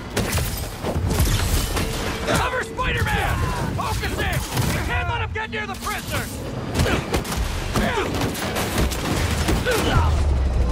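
Heavy punches land with dull thuds and cracks.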